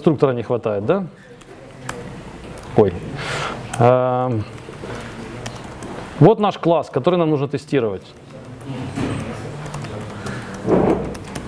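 Laptop keys click as a man types.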